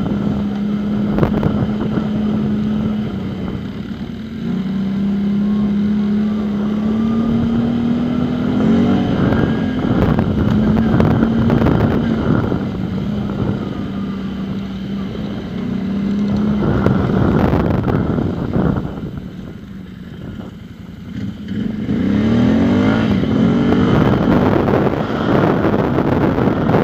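The engine of a nearby quad bike drones and revs steadily.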